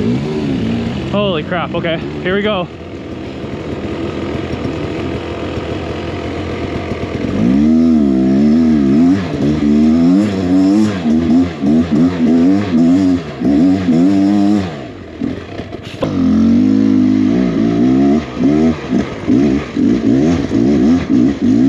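A dirt bike engine revs hard and close, rising and falling in pitch.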